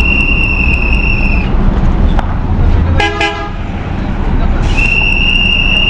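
A bus engine rumbles steadily nearby.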